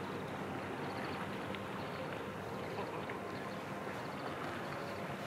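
Calm water laps gently against a rocky shore.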